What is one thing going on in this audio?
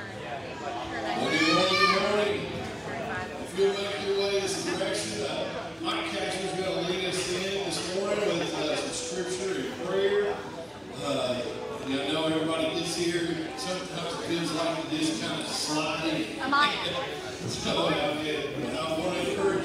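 An electric guitar plays softly.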